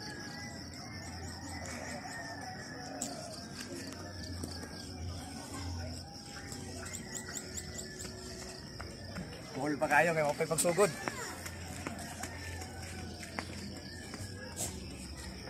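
Footsteps slap on a paved road as a man runs.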